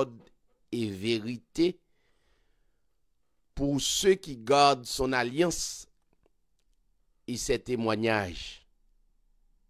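A man speaks into a microphone in short, emphatic phrases with pauses between them.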